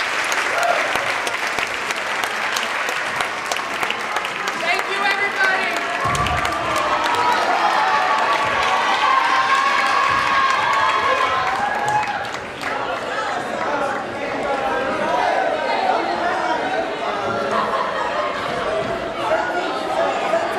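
A crowd of young people cheers and whoops.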